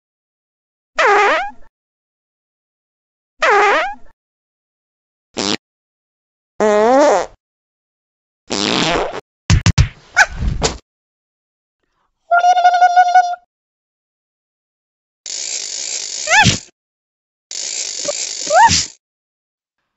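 A cartoon cat makes short, high, squeaky sounds in bursts.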